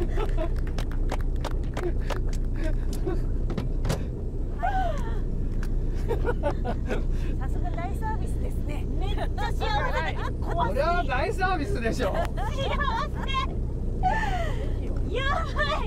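A young woman laughs and exclaims excitedly, close by.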